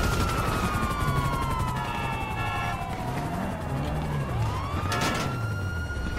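A police siren wails, falling and rising in pitch.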